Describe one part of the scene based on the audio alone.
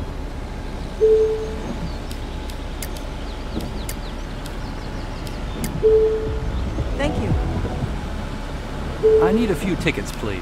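A ticket machine beeps briefly now and then.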